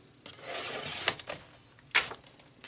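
A paper trimmer blade slides along and cuts paper.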